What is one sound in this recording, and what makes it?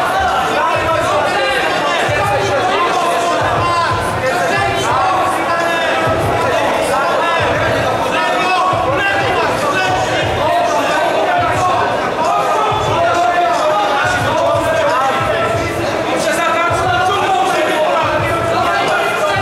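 A crowd of men and women shouts and cheers loudly close by.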